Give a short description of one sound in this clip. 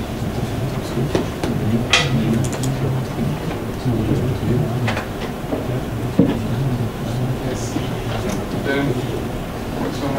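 A man types on a laptop keyboard.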